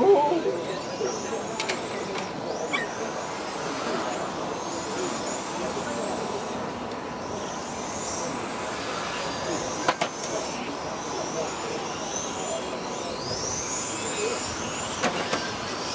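Small electric model cars whine as they speed around a track outdoors.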